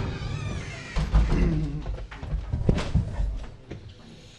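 Chairs knock and scrape as men sit down close by.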